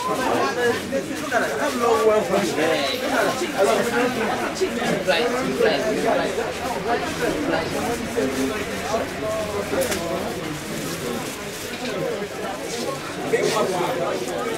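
Several young men and women talk nearby.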